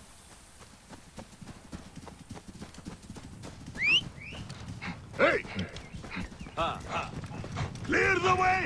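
Horses' hooves thud as several riders gallop nearby.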